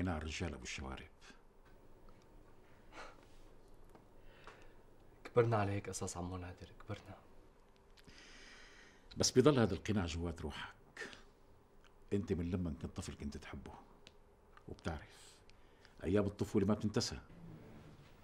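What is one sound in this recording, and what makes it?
A middle-aged man speaks calmly and seriously nearby.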